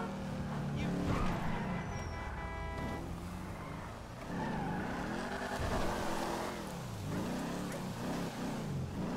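A muscle car engine revs hard, rising and falling in pitch.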